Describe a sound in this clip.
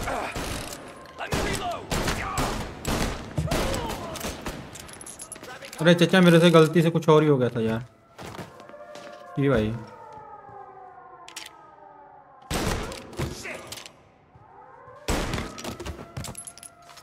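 Pistol shots ring out in quick bursts, echoing in a large hall.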